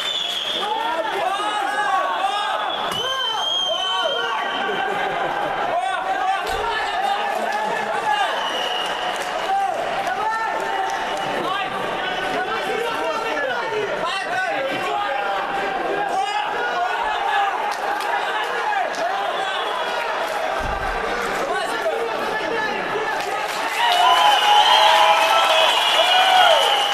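A crowd of spectators shouts and cheers in a large echoing hall, growing louder near the end.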